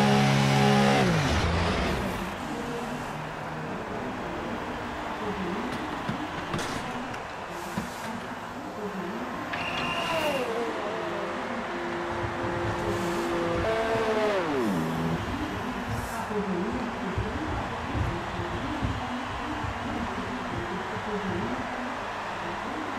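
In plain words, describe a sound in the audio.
A race car engine idles with a rough, uneven burble.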